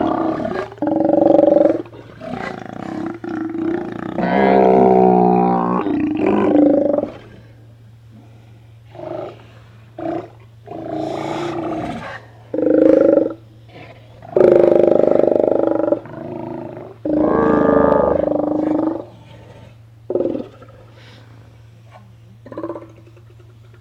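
Sea lions roar and groan loudly close by.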